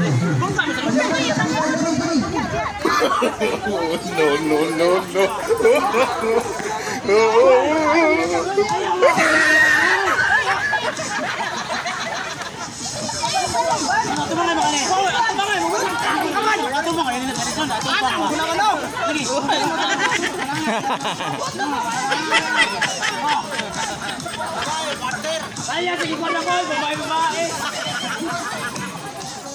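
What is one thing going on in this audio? A crowd of young men and women laughs loudly.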